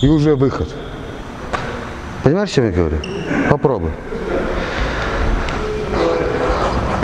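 Sneakers squeak and shuffle on a wooden floor.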